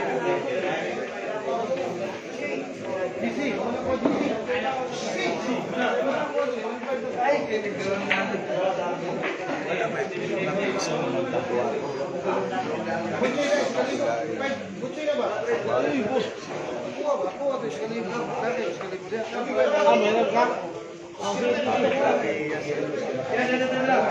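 Men talk casually nearby.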